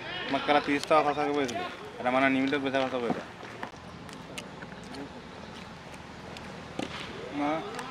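A cricket bat strikes a ball with a sharp knock.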